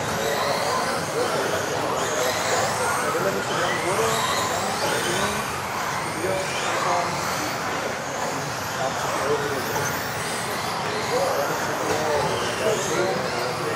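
Small electric model cars whine as they race around, echoing in a large hall.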